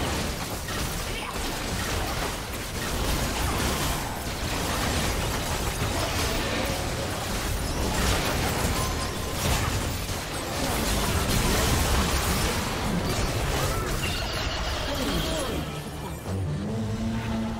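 Video game spell effects crackle, whoosh and clash in a busy fight.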